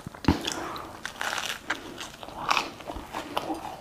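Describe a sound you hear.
A man bites into crunchy bread with a crisp crack.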